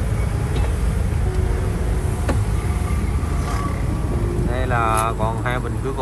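A vehicle engine rumbles low and steadily.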